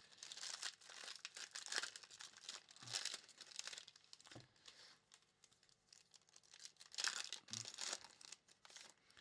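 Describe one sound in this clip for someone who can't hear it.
Foil wrappers crinkle and rustle as hands tear open a card pack.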